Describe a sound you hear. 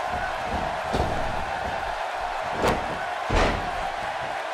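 A wrestler's body slams heavily onto the ring mat.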